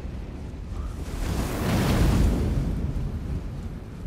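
A fiery blast roars and crackles.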